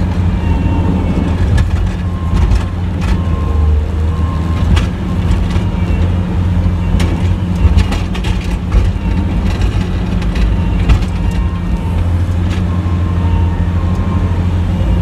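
A snow plow blade scrapes and pushes snow.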